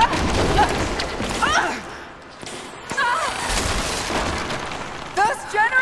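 Wooden beams crash and splinter as they collapse.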